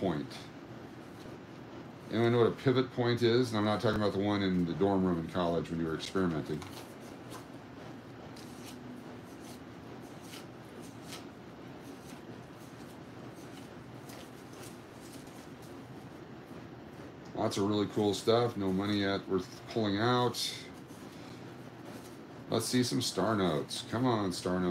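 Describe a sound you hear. Paper banknotes flick and rustle as they are counted by hand.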